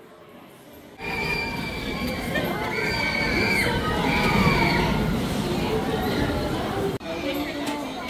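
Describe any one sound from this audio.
A roller coaster train rumbles and roars past on its track.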